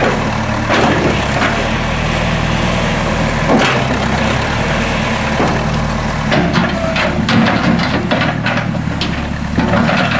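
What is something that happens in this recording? A diesel backhoe engine rumbles steadily close by.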